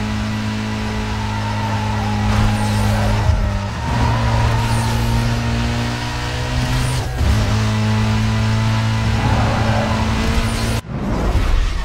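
A car engine roars at high speed, shifting gears.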